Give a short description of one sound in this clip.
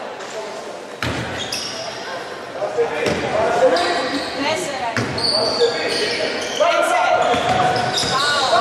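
A basketball bounces with hollow thuds on a wooden floor.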